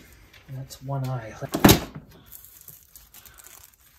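Plastic wrap crinkles as it is lifted.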